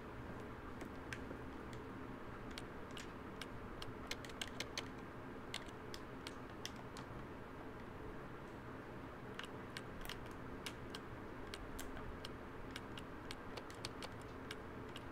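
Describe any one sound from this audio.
Keypad buttons click sharply as they are pressed, one after another.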